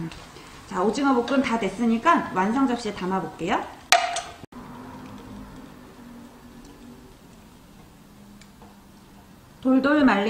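Food sizzles and scrapes as a wooden spatula stirs it in a frying pan.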